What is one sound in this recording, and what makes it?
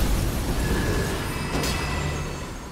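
A sword clangs against a shield.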